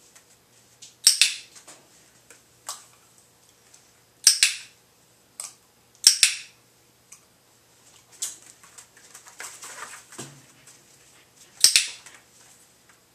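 A dog gives short, sharp barks.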